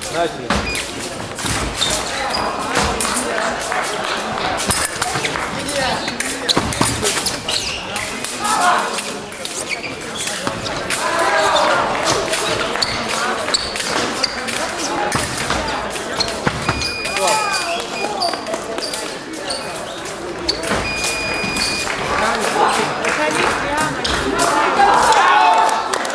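Voices of a crowd murmur and shout in a large echoing hall.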